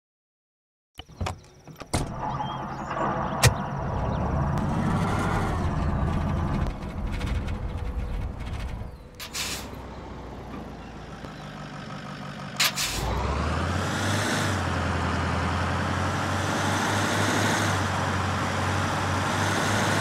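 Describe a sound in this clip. A heavy vehicle engine rumbles and revs as it drives.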